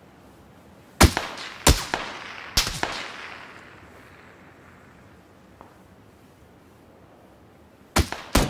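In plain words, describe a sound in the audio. Gunshots ring out loudly in quick bursts and echo away.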